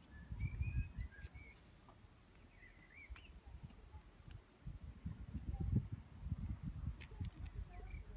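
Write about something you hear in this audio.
Leafy branches rustle and brush close by.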